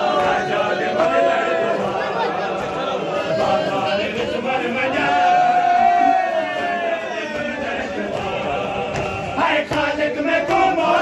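Men beat their bare chests in a steady rhythm.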